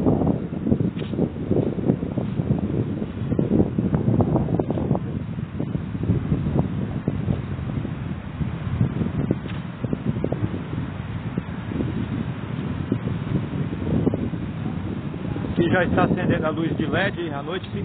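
Strong wind gusts roar against a microphone outdoors.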